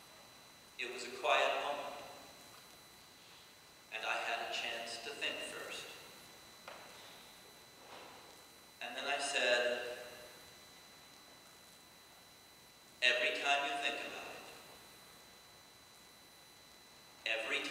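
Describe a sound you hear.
A middle-aged man speaks calmly through a microphone in short phrases with pauses, echoing in a large hall.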